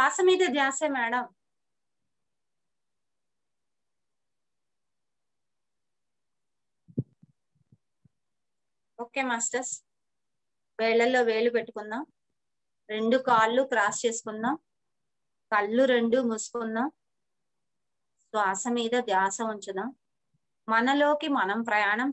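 A middle-aged woman speaks calmly through a microphone on an online call, with pauses.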